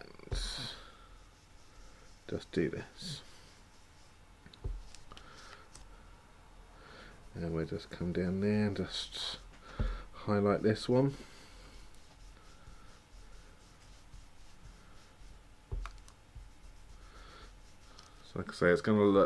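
A sponge dabs and rubs softly on paper.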